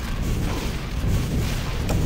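An explosion booms in a game.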